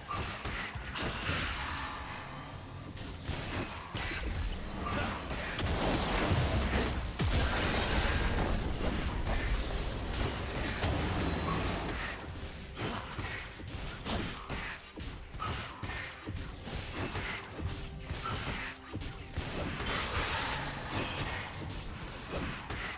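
Spell effects crackle and whoosh in a game.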